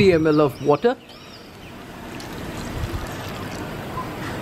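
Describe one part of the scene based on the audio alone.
Water pours into a pan with a steady splash.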